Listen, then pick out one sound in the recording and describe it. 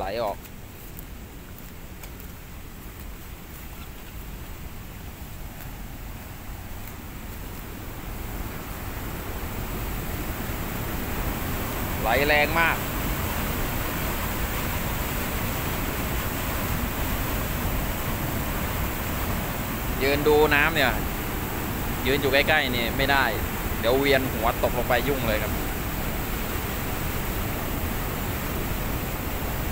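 Muddy floodwater rushes and churns loudly, growing louder as it comes closer.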